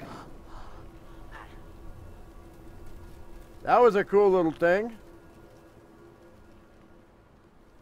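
A small campfire crackles softly.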